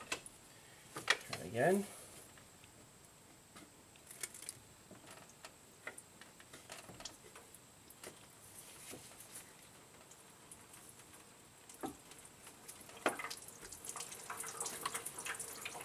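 Metal engine parts clink and knock softly under a working hand.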